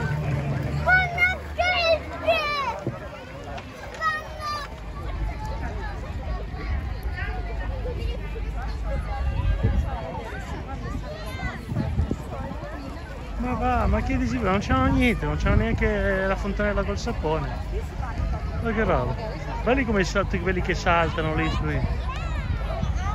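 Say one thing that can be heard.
Children shout and squeal nearby.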